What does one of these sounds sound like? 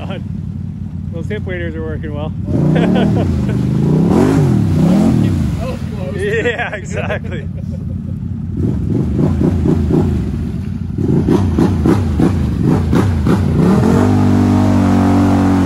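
An engine revs hard and bogs down, rising and falling in pitch.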